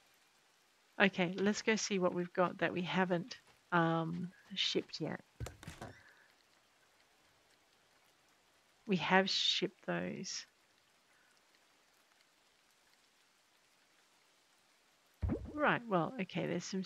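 A woman talks casually and close into a microphone, with pauses.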